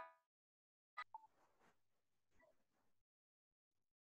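A man speaks quietly over an online call.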